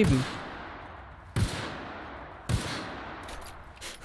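Gunshots boom with a long echoing tail.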